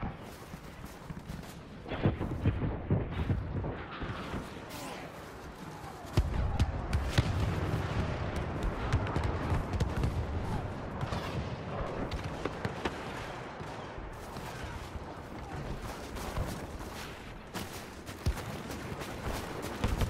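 Laser blasters fire in sharp bursts.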